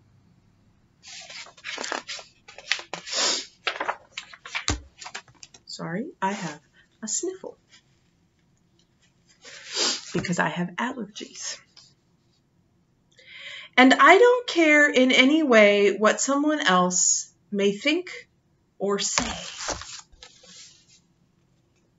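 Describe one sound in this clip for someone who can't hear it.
A woman reads aloud and talks calmly, close to a microphone.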